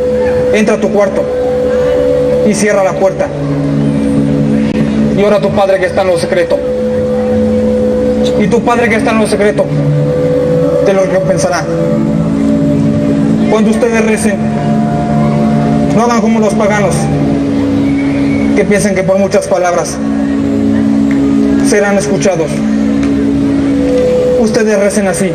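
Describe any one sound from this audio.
A man speaks dramatically, heard from some distance.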